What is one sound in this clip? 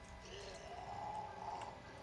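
Fingers tap quickly on a computer keyboard.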